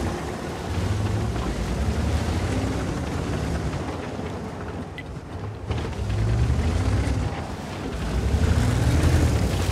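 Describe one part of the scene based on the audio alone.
A heavy tank engine rumbles low and steady.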